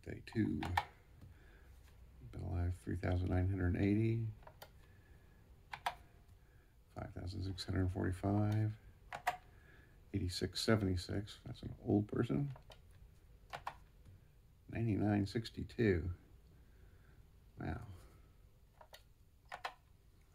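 Plastic buttons click as they are pressed, one after another.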